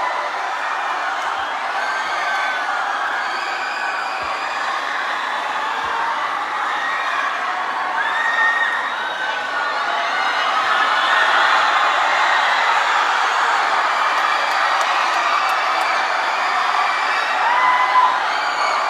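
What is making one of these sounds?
A large crowd cheers and screams loudly in a big echoing hall.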